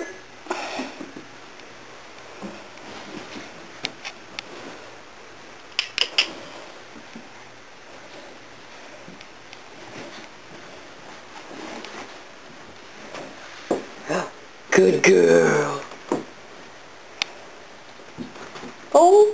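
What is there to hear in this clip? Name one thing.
A puppy's paws thump softly on carpeted stairs.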